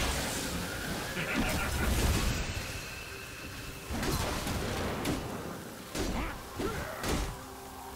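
Magic spells burst and crackle in a game battle.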